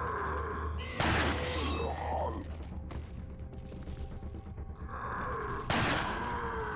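A revolver fires loud, echoing shots.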